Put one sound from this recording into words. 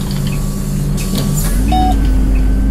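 Bus doors hiss and thump shut.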